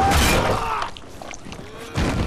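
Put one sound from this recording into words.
A man shouts in pain, close by.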